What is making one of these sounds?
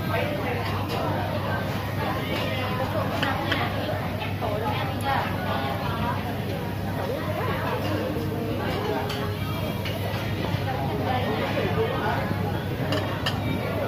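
Metal tongs and chopsticks clink against plates and a grill.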